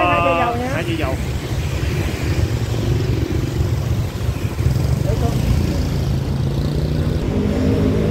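A motorbike engine idles with a low rumble.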